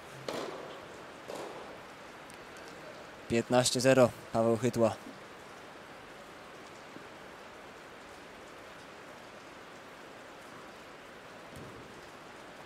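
A tennis ball is struck with a racket, echoing in a large hall.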